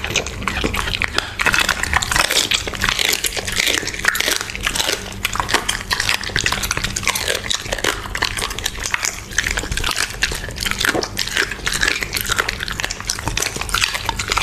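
A puppy chews and crunches wet raw meat close up.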